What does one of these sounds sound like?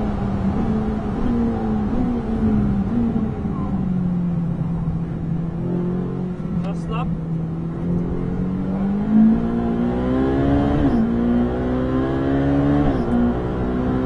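Gears shift with quick jolts as the car brakes and accelerates.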